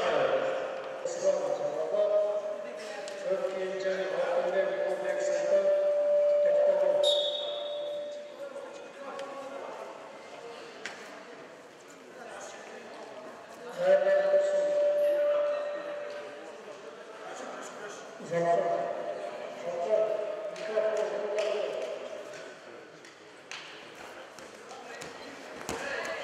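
Two wrestlers' feet shuffle and scuff on a mat in a large echoing hall.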